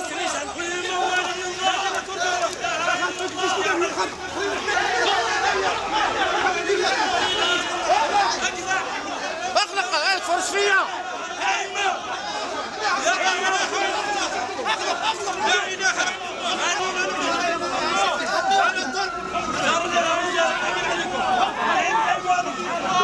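A crowd of men shouts and argues loudly close by, outdoors.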